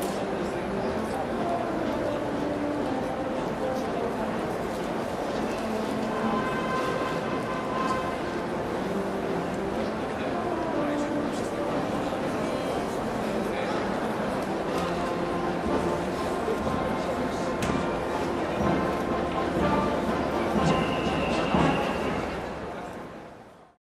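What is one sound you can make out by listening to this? A brass band plays a march across a large open stadium.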